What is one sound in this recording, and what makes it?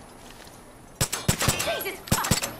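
A rifle fires a rapid burst of shots close by.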